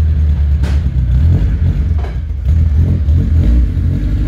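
A car engine idles with a deep, rumbling exhaust.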